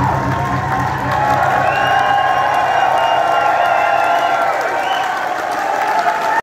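A live rock band plays loudly in a large echoing hall.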